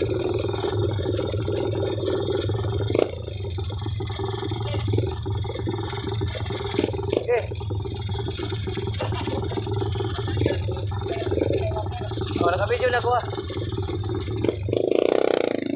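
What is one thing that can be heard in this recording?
A motorcycle engine idles close by with a low rumble.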